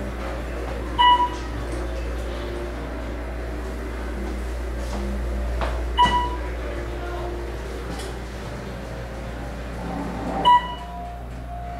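An elevator chime dings several times.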